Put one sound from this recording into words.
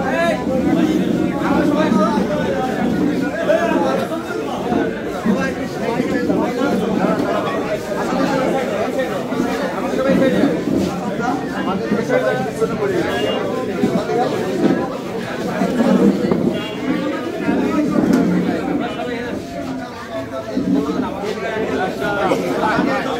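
A crowd of men talk over one another loudly and close by.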